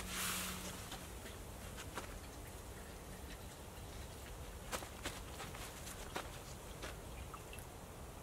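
A metal spoon clinks and scrapes inside a small pot.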